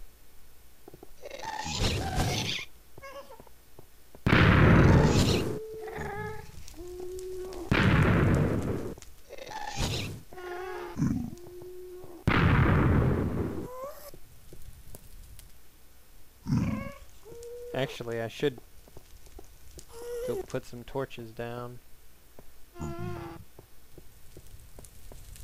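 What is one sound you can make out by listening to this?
Fire crackles and hisses nearby.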